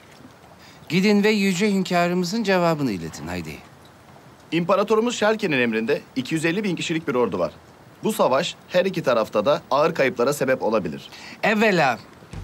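A man speaks firmly in a deep voice.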